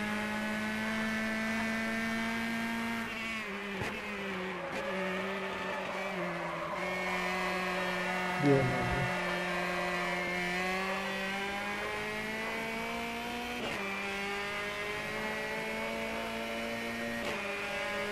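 A racing car engine roars, revving down for corners and climbing again through the gears.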